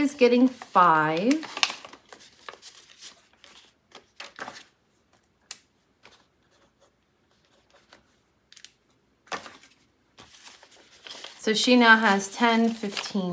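Paper banknotes rustle and crinkle as hands handle them.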